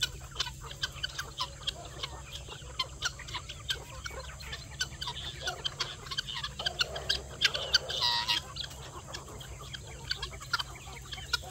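A large flock of chickens and guinea fowl cluck and chirp nearby.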